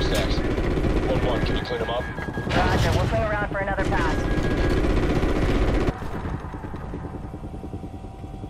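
A helicopter's rotor thumps and its engine drones loudly, then grows quieter.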